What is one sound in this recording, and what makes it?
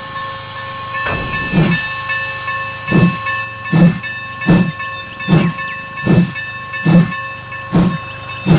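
A steam locomotive chuffs in quick, regular puffs.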